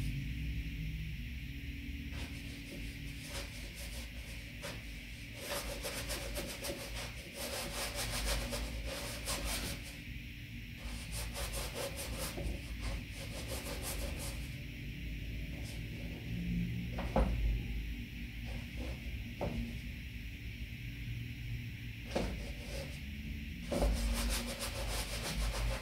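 A paintbrush scrapes and dabs across a canvas.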